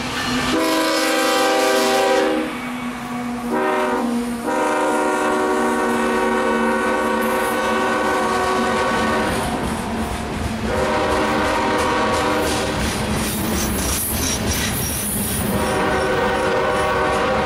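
A heavy freight train rumbles and clatters past on the rails.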